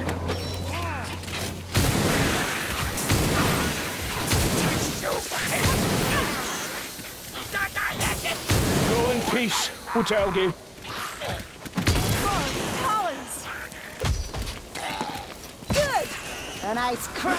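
Metal weapons clash and slash in a fight.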